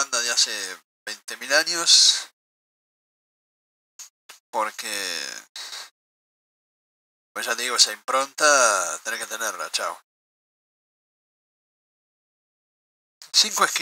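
A middle-aged man speaks calmly and closely into a microphone, in short phrases with pauses.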